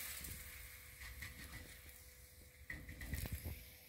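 A flatbread sizzles faintly on a hot griddle.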